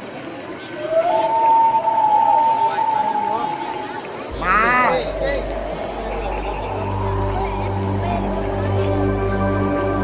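Music plays loudly through big loudspeakers outdoors.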